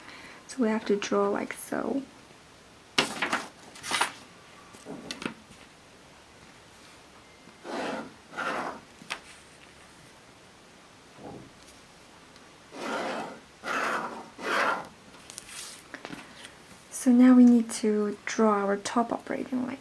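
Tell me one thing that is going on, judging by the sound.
A pen scratches along paper as lines are drawn.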